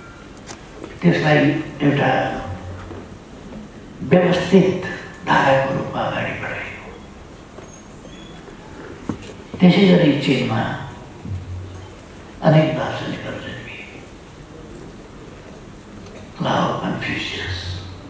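An elderly man speaks slowly and deliberately into a microphone, with pauses, in a large echoing hall.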